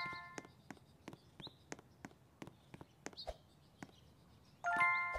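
Light footsteps tap quickly.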